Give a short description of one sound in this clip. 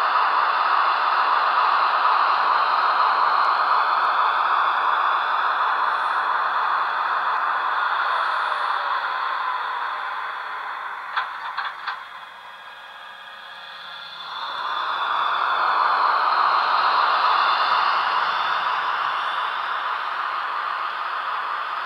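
A model train whirs and rattles along the track, fading as it slows, then rising again as it moves off.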